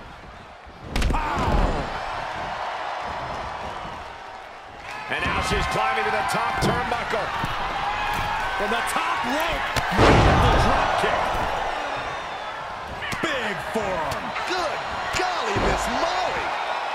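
Bodies slam heavily onto a wrestling mat with deep thuds.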